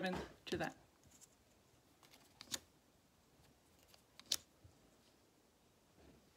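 Stiff card pieces tap and slide on a wooden table.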